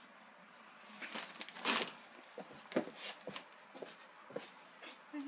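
A plastic snack bag crinkles and rustles.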